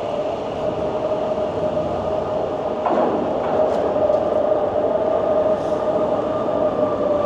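An electric bike's motor whines as it rides along.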